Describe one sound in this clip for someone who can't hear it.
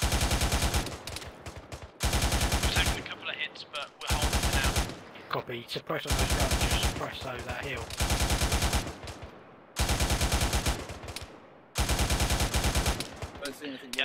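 A machine gun fires short rapid bursts.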